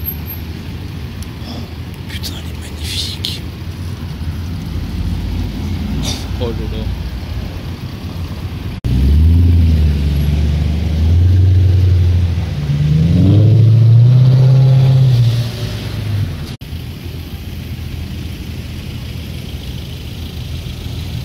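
A sports car engine idles with a low rumble.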